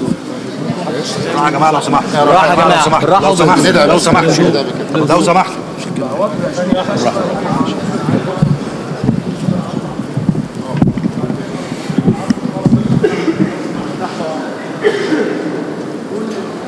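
A crowd of men murmurs and talks throughout.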